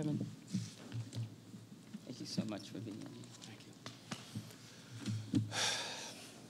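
A man speaks emotionally into a microphone.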